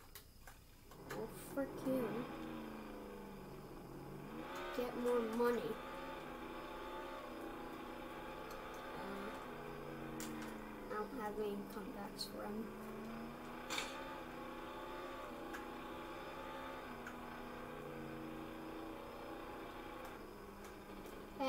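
A car engine drones and revs up and down.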